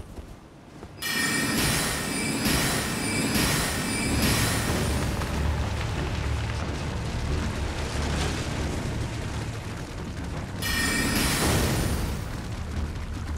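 A bright magical shimmer chimes and rings out.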